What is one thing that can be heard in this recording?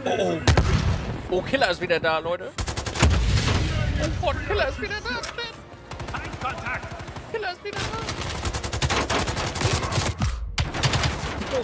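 Gunfire from a game crackles in rapid bursts.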